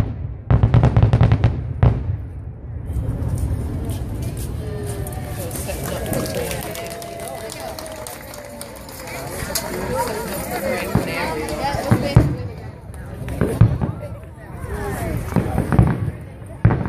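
A crowd of people chatters and talks outdoors.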